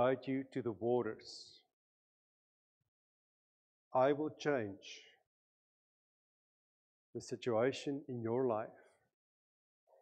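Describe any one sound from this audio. A middle-aged man speaks calmly with pauses through a microphone.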